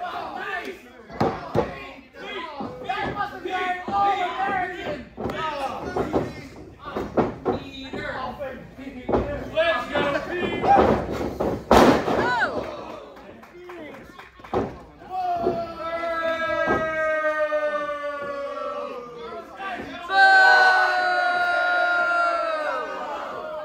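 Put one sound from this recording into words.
Spectators shout and cheer nearby.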